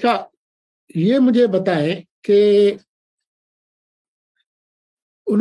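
An elderly man speaks calmly over an online call, in short bursts with pauses.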